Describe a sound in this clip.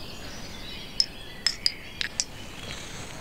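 Small glasses clink together in a toast.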